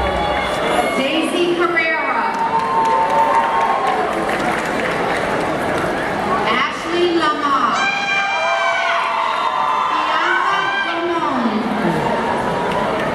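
A large crowd cheers, whoops and shouts loudly in a big echoing hall.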